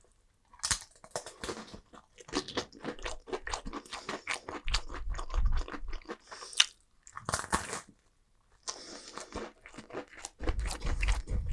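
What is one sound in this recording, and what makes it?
Food is chewed and crunched loudly close to a microphone.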